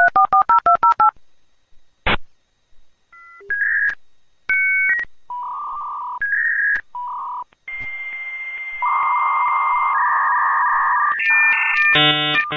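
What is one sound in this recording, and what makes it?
A modem dials with a quick run of beeping tones.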